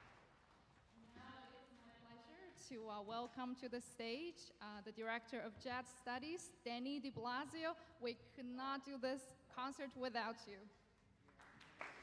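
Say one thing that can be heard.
A young woman speaks calmly into a microphone in a large hall.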